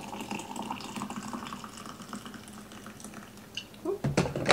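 Water pours from a kettle.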